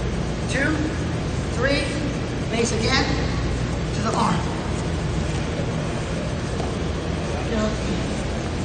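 Shoes squeak sharply on a mat.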